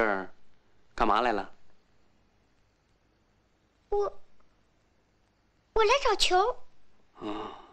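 A young girl answers in short phrases nearby.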